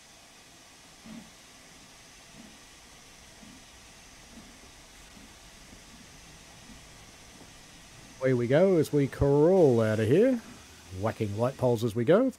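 A steam locomotive chuffs softly, its puffs slowly quickening.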